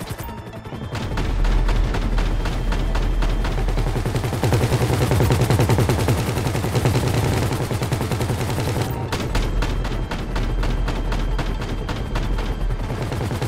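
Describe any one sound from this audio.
A helicopter's heavy gun fires in quick bursts.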